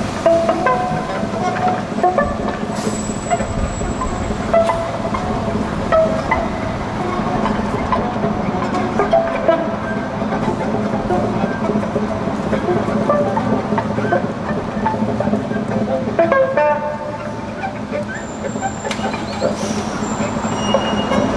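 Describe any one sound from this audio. An acoustic guitar plays plucked notes outdoors.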